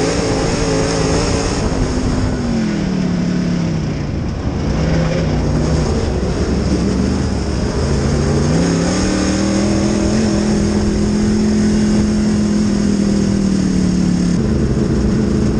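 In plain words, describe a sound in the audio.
A race car engine roars loudly up close, its pitch falling and rising as it slows and speeds up.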